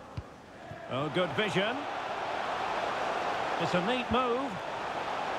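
A stadium crowd roars louder as an attack nears the goal.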